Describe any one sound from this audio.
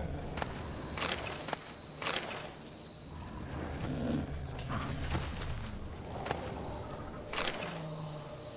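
Short soft clicks and chimes sound as items are picked up.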